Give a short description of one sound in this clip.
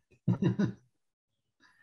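An elderly man laughs briefly over an online call.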